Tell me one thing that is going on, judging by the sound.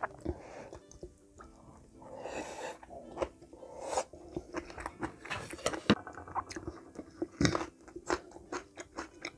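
A woman chews and slurps food noisily up close.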